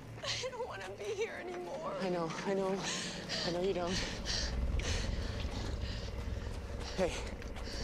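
A young woman whimpers and sobs in fear close by.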